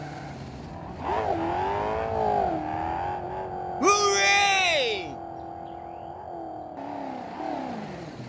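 A truck engine roars as it drives past.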